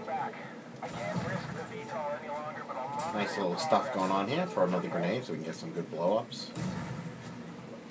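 An explosion from a video game booms through a loudspeaker.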